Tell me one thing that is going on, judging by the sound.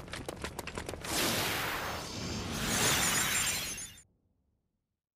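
A magical whooshing shimmer swells loudly and cuts off.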